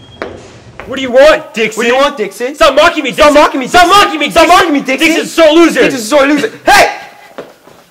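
A young man shouts angrily at close range.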